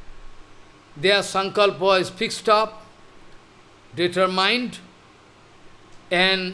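An elderly man speaks slowly and calmly into a close microphone, pausing between phrases.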